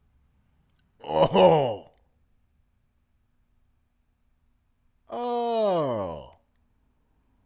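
A young man close to a microphone cries out in surprise.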